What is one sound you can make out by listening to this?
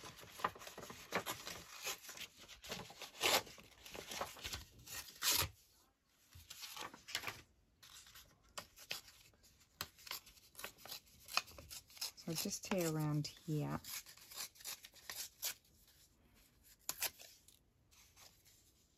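Paper rustles and crinkles close by as hands handle it.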